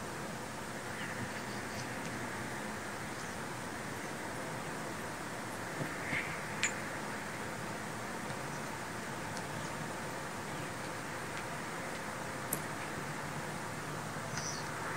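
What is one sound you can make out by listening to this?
A small bird chirps briefly now and then.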